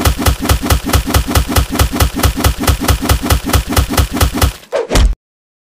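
Chainsaw blades strike again and again in a fast, steady rhythm.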